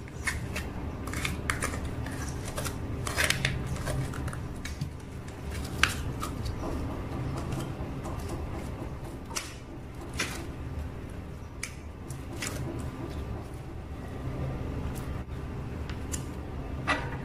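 Plastic cups crinkle and tap as hands handle them.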